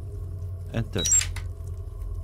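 Keypad buttons beep in quick succession.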